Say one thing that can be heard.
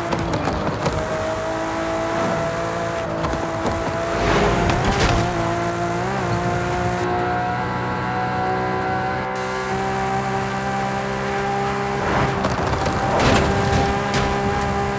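Tyres hiss on the road.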